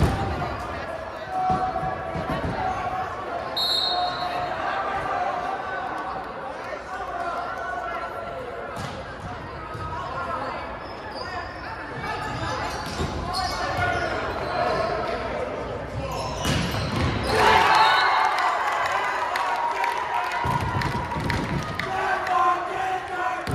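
A crowd of spectators chatters throughout a large echoing gym.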